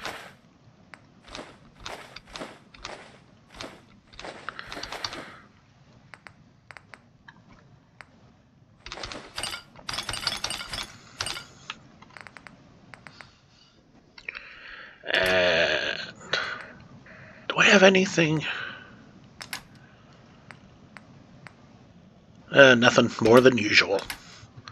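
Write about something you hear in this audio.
Short soft clicks tick as a game menu list scrolls.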